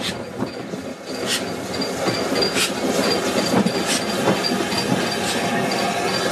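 A steam locomotive chuffs rhythmically, growing louder as it nears.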